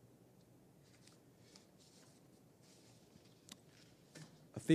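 Paper pages rustle as a man turns them.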